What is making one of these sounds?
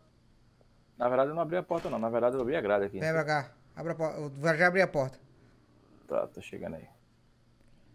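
A young man talks loudly and with animation, close to a microphone.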